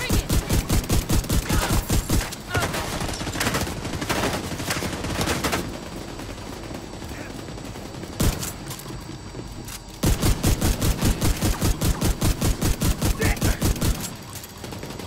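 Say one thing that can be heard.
Rapid automatic gunfire rattles in fast bursts.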